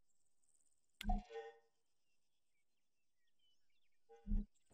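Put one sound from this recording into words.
A rifle fires with a loud crack that echoes briefly.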